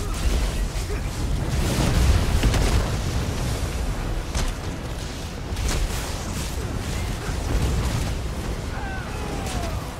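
Sword slashes whoosh and clang in rapid bursts.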